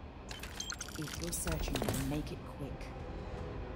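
A woman speaks briefly over a radio.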